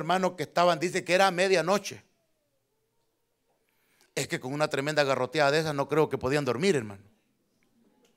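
A man preaches loudly and forcefully through a microphone in a large hall.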